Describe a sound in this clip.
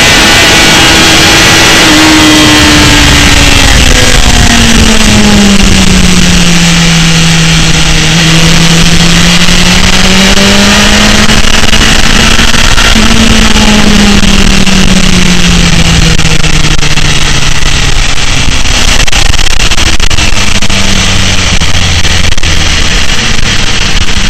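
A motorcycle engine roars close by, its pitch rising and falling as it speeds up and slows through bends.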